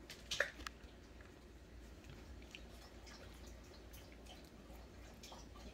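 Newborn puppies squeak and whimper close by.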